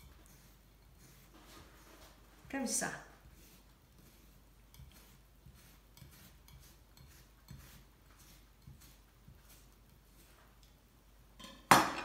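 A knife taps softly on a cutting board as it slices a cucumber.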